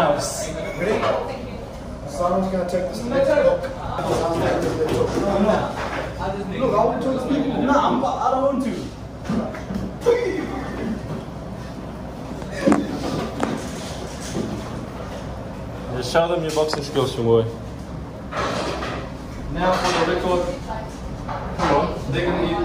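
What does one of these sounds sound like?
A young man talks and laughs with animation close by.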